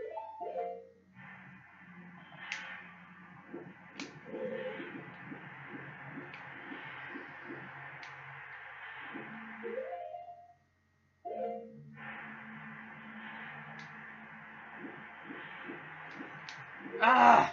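Video game music plays through a television speaker.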